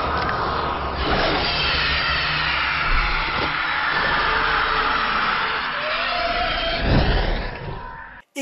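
A young girl screams shrilly.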